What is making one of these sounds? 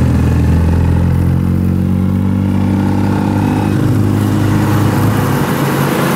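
A motorcycle with a sidecar passes with a rattling engine.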